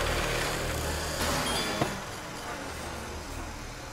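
A door creaks open with a click.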